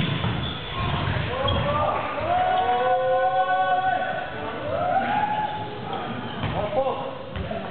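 Young men call out to each other loudly in an echoing hall.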